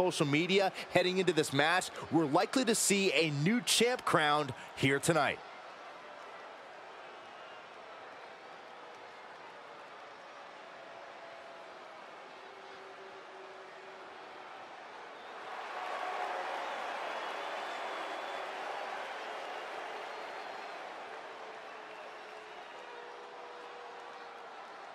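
A large crowd cheers and roars in a big arena, swelling louder partway through.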